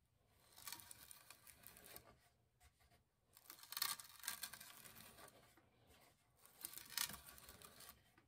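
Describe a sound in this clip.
An auger bit grinds and scrapes as it bores into wood, in bursts.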